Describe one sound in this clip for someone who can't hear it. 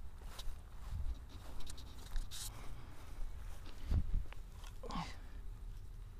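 Footsteps crunch through dry grass close by.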